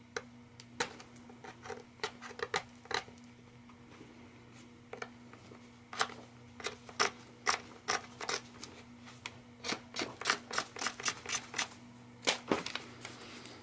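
A needle pierces paper with sharp little clicks.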